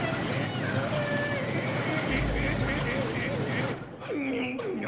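Rocket thrusters roar loudly.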